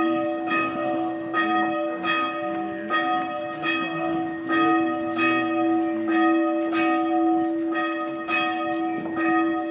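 Footsteps shuffle on a paved path as a group walks closer.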